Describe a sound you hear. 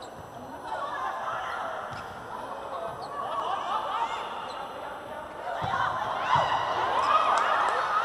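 A volleyball is struck with sharp thumps.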